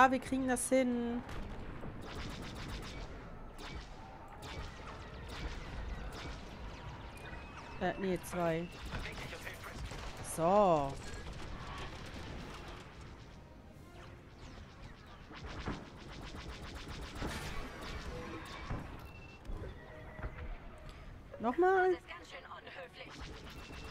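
Laser cannons fire in quick bursts.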